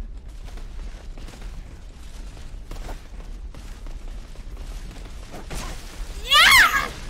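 Swords clash and clang in a game fight.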